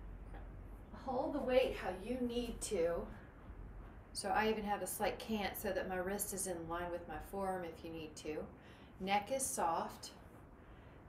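A young woman talks calmly to the listener, close by.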